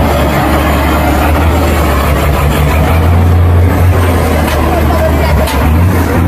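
A heavy truck engine roars and labours loudly close by.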